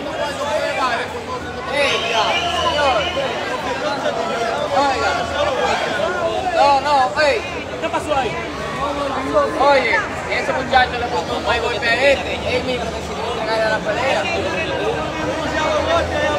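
A crowd of men talk over one another.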